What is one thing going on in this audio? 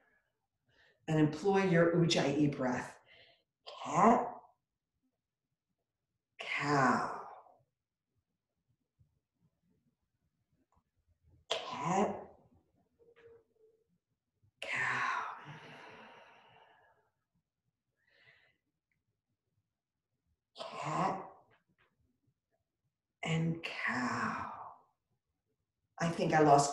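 An older woman speaks calmly and slowly in short phrases, close to a microphone.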